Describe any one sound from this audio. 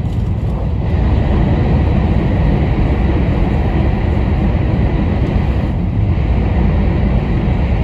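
A train's roar grows louder as it enters a tunnel.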